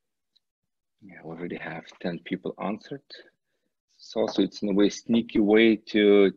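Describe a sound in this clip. A man speaks calmly through an online call microphone.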